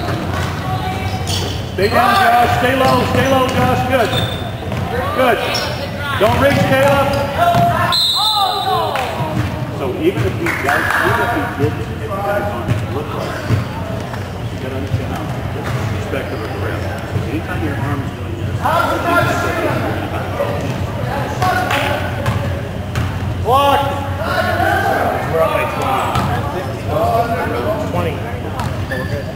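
A crowd of young people shouts and cheers in a large echoing gym.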